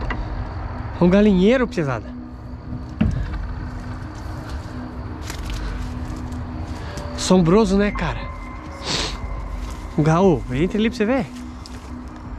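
A man calls out loudly nearby in a wavering voice.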